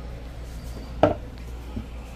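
A ceramic mug knocks down onto a wooden table.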